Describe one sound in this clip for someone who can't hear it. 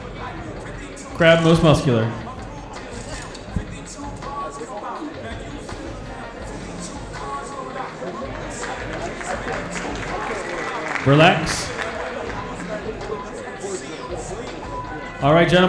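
An audience murmurs and chatters in the background.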